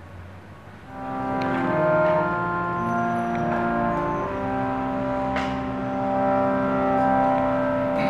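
A harmonium plays sustained chords.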